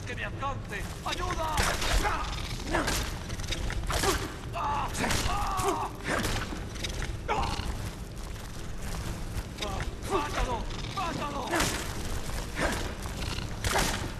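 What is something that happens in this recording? A weapon thuds against a giant spider.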